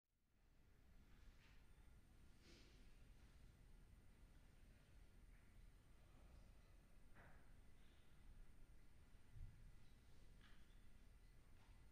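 A piano plays softly in a large hall.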